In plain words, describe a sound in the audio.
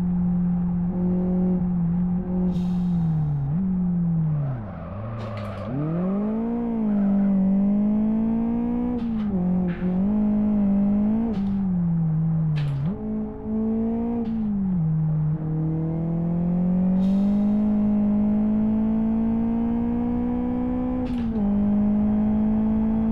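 A racing car engine revs up and down as gears shift.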